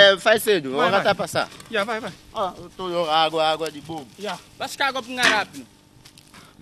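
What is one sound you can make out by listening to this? Young men talk loudly outdoors.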